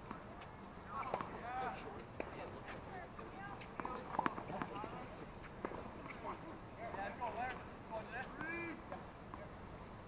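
Young men talk to each other on a court, heard from a distance.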